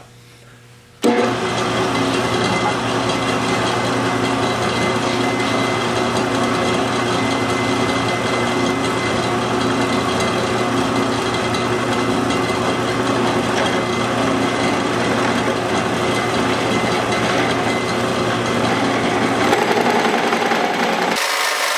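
A drill press whirs steadily as it bores into wood.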